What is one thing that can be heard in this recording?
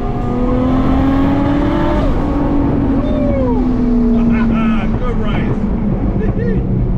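A car engine drones steadily inside the cabin, dropping in pitch at a gear change.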